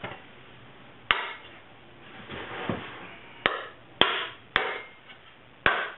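A hammer strikes metal on a wooden block with sharp ringing blows.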